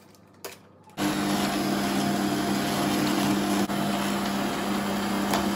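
An electric mixer whirs steadily.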